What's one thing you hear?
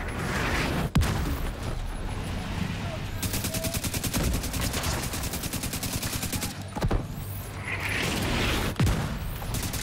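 Explosions boom and debris clatters.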